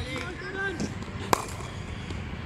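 A cricket bat sharply strikes a ball.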